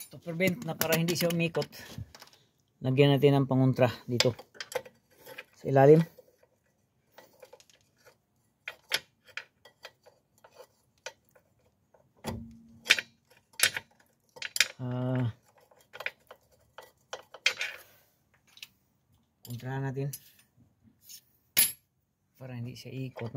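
A metal wrench clinks against a wheel bolt.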